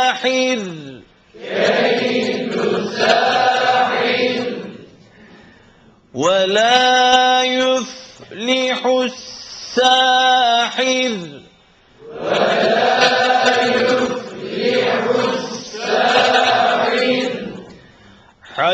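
A man sings a slow, drawn-out melodic chant through a microphone in an echoing hall.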